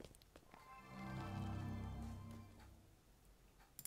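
A short, soft tune plays.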